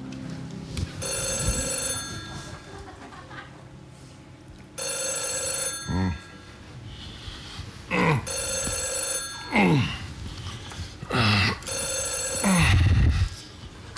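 A telephone rings in repeated bursts.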